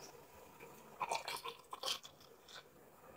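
A fizzy drink pours and fizzes into a glass.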